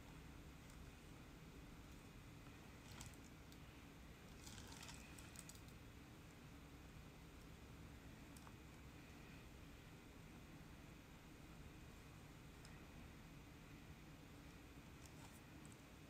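A tool lightly scrapes and taps against a clay pot.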